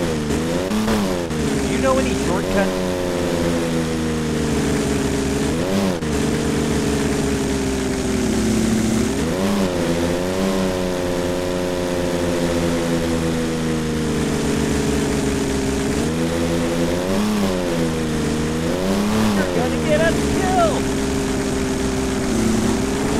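A car engine hums steadily and revs up and down as the car drives.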